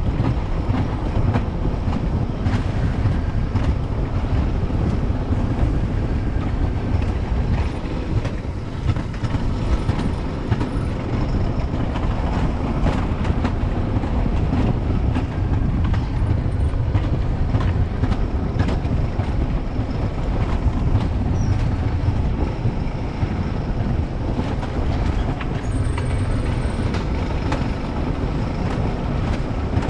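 A sledge's wheels rumble and rattle steadily along a metal track.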